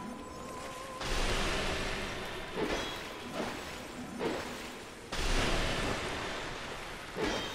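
A magic blast bursts with a loud whoosh.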